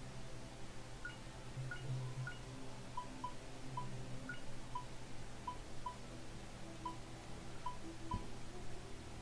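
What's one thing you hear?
Short electronic menu beeps sound again and again.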